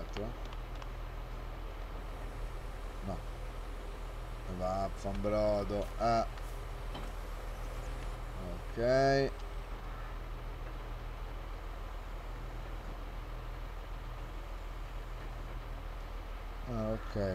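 A tractor engine idles steadily.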